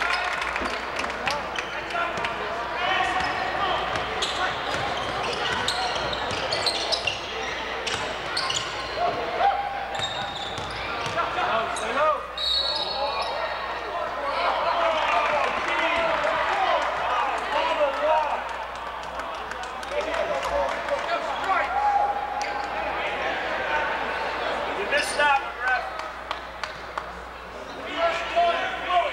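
A crowd murmurs and chatters throughout a large echoing gym.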